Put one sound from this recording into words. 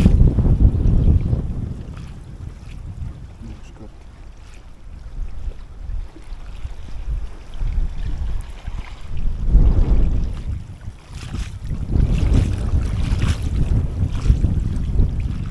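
Small waves lap against the shore.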